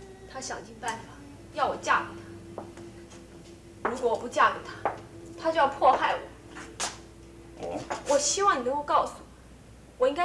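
A young woman speaks in a low, tense voice.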